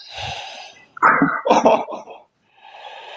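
A man laughs over an online call.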